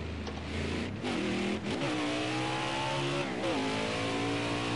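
A V8 stock car engine blips its throttle as it shifts down.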